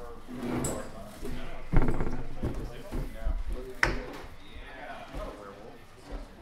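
Several adults talk quietly in a room.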